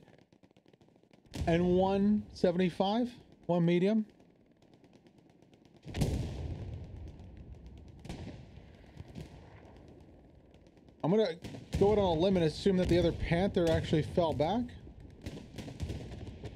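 Cannons boom and rumble in the distance.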